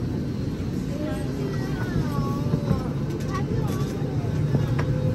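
Passengers murmur and talk nearby.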